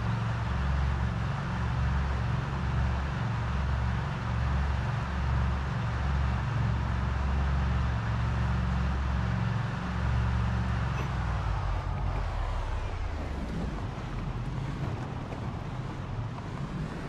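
A truck engine rumbles steadily as the truck drives along a road.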